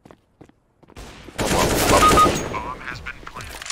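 Rifle shots crack in a quick burst.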